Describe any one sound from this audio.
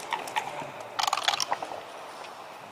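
Dice rattle and tumble on a board.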